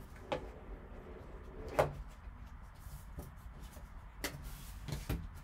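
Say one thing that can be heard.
A wooden box lid knocks and scrapes as it is handled.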